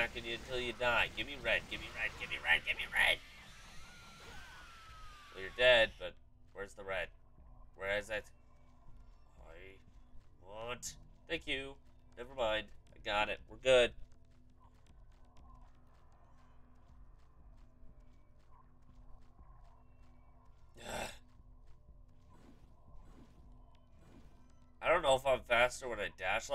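A young man talks casually and close to a microphone.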